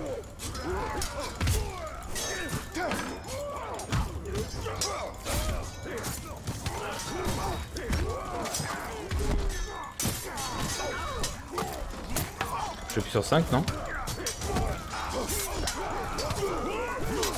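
Swords clash and strike in a chaotic melee.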